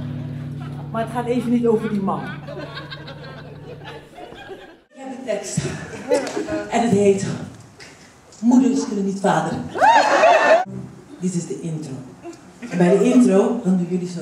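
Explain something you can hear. A woman speaks with animation through a microphone in an echoing hall.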